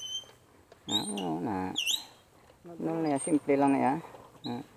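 A dirt bike engine revs close by.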